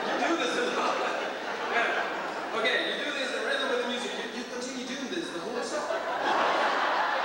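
A group of men sings together in a large echoing hall.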